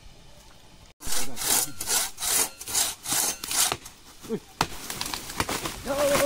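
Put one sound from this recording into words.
A hand saw rasps back and forth through wood.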